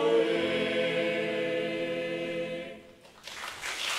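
A youth choir sings a sustained chord in a large hall, the sound ringing out and fading.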